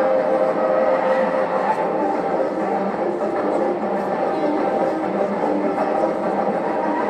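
A crowd murmurs and chatters in the background.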